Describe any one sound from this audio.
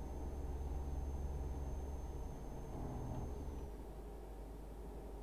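Tyres roll on a smooth road.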